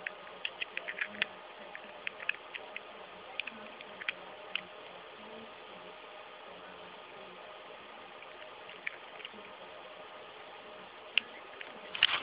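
A small plug clicks and scrapes against a socket.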